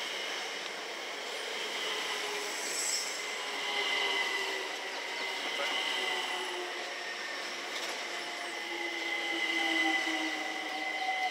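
A train's brakes squeal and whine as it slows to a stop.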